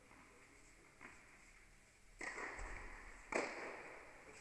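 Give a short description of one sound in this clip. A tennis ball thuds on a hard court, echoing through a large hall.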